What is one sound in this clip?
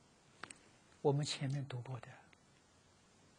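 An elderly man speaks calmly into a clip-on microphone.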